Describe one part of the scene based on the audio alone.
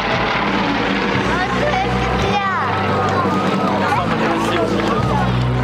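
Propeller aircraft engines drone overhead.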